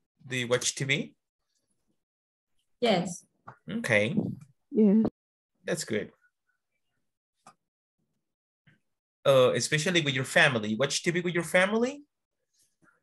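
A woman speaks calmly over an online call, pausing between phrases.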